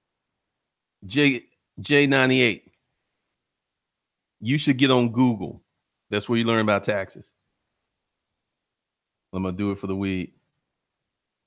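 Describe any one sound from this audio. A man talks calmly and closely into a microphone, in short bursts with pauses.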